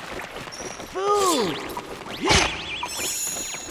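A magic blast bursts with a sharp, ringing zap.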